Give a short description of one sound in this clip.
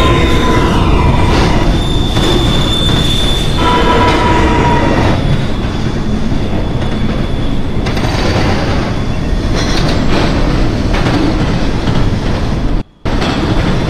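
A subway train rumbles and clatters along the tracks in a tunnel.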